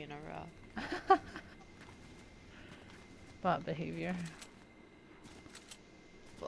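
Footsteps patter quickly across grass.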